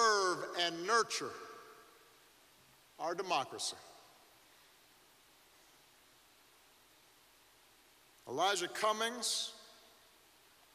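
A middle-aged man speaks slowly and deliberately into a microphone, with long pauses, echoing in a large hall.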